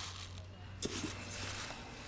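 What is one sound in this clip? Rice grains pour and hiss into a tray.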